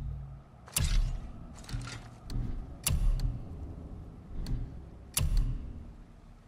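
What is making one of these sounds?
Menu clicks tick sharply.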